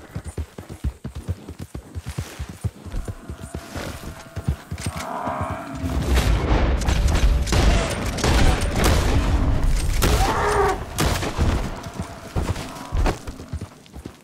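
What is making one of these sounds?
Hooves thud steadily as a horse gallops over grass.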